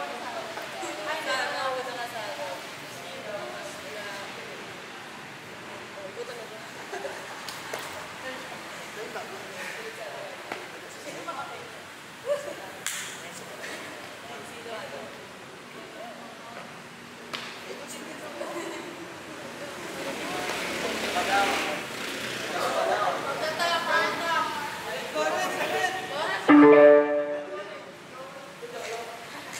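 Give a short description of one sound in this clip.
Young people chatter and laugh nearby.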